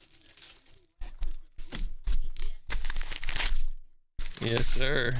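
A paper envelope rustles as it is handled.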